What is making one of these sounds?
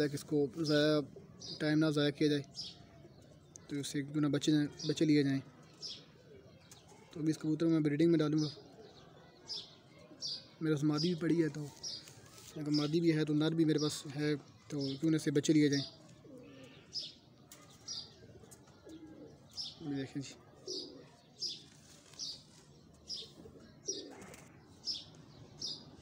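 Feathers rustle softly as hands handle a pigeon.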